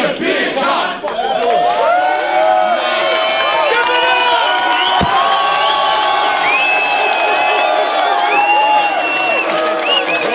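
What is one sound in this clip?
A crowd cheers and whoops loudly nearby.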